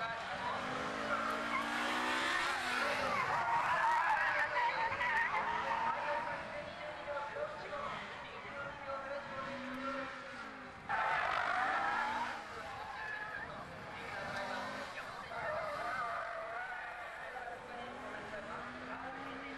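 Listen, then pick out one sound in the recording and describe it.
A racing car engine roars and revs up and down as the car speeds past.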